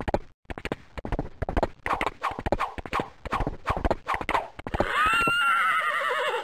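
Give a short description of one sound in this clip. A lasso whirls and swishes through the air.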